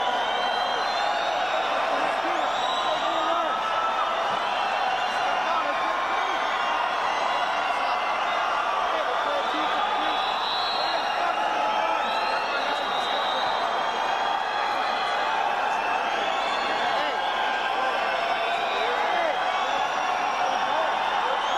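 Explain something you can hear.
A large crowd cheers and screams steadily in a big echoing hall.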